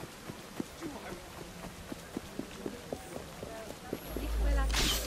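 Quick footsteps run over soft ground.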